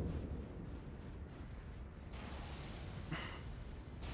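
Footsteps run across sand.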